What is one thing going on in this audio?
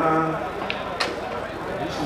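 A cue strikes a billiard ball with a sharp click.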